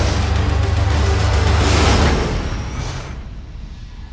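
A glowing energy orb crackles and roars loudly.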